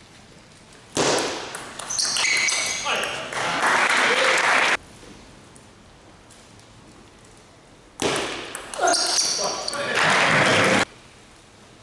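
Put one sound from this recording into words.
A crowd of men and women cheers and shouts.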